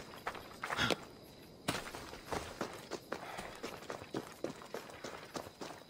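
Footsteps crunch quickly through dry grass and stones.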